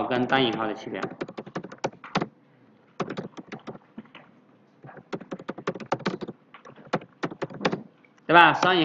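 Computer keys click quickly.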